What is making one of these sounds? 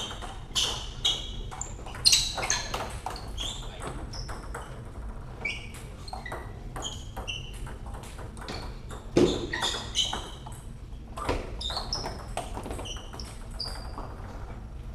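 Ball clicks echo through a large hall.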